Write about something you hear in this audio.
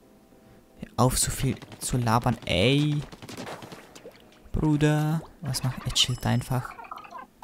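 Paint sprays and splatters in wet bursts.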